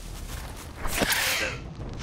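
A spear stabs into a lizard with a thud.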